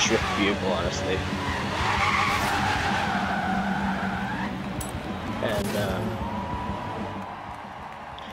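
A car engine roars and revs as it drifts.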